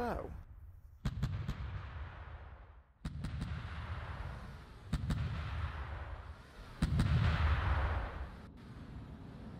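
Heavy guns boom, each blast rumbling away.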